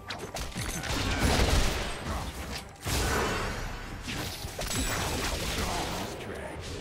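Magic blasts crackle and whoosh in a fast fight.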